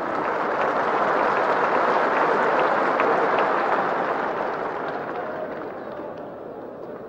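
A large stadium crowd roars loudly, then fades.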